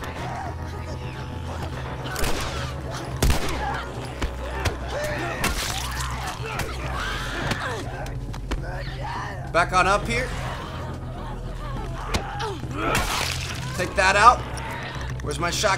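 A young man talks and shouts with animation close to a microphone.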